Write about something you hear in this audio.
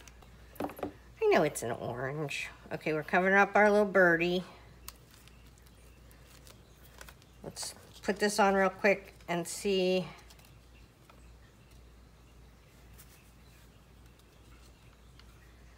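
Paper rustles and crinkles softly as hands handle it.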